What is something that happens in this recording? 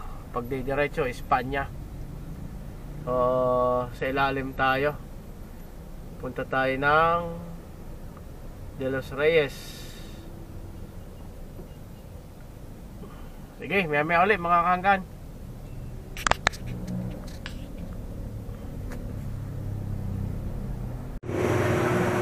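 A car engine hums steadily while driving in traffic.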